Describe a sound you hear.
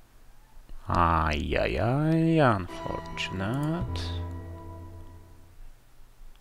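A short electronic game jingle plays.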